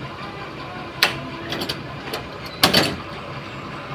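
A metal latch clicks and clanks as a man works the handle.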